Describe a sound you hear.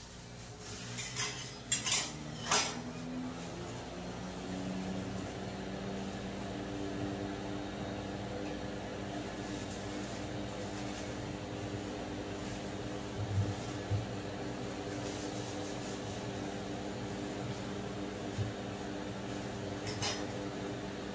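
Metal spatulas clink and scrape against a steel tray.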